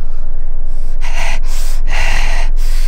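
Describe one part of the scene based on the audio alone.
A man growls and snarls loudly close by.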